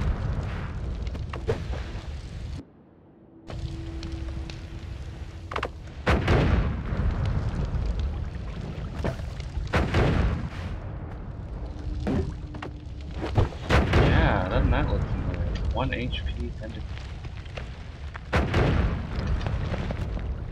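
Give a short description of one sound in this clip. Explosions boom and rumble in short bursts.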